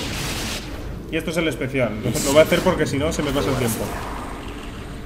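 A blast of energy roars and crackles.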